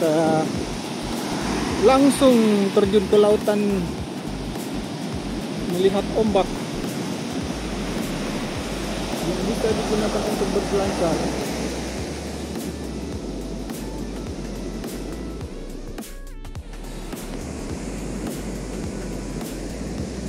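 Waves crash and wash steadily onto a beach.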